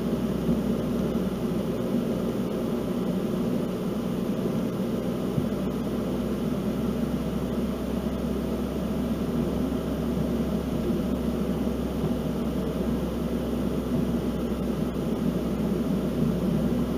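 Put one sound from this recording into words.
Tyres roll steadily on a paved road.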